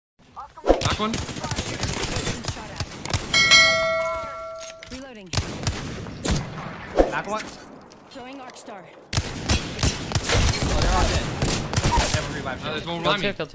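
Gunfire from a video game rifle rattles in rapid bursts.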